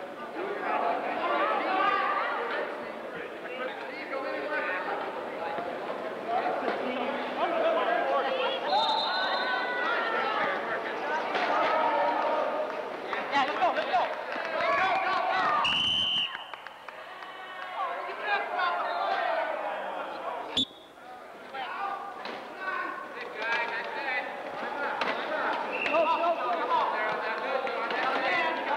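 Many young men and women shout and call out to one another in a large echoing hall.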